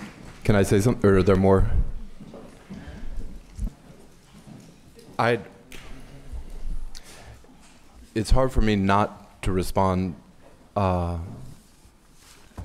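A man speaks through a microphone in a measured way, with a slight room echo.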